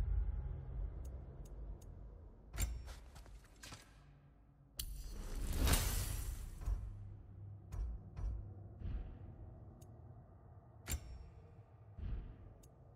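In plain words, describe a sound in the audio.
Short soft clicks sound as menu options change.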